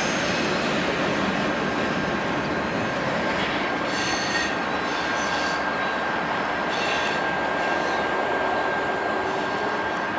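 A freight train rumbles slowly along the track.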